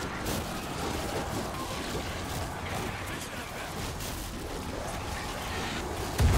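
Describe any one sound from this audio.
A young man speaks into a microphone close by.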